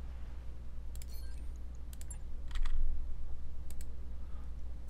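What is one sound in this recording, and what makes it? Short electronic interface clicks sound a few times.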